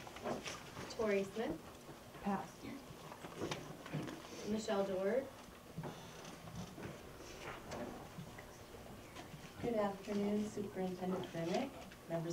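A woman speaks calmly at a distance in a room with slight echo.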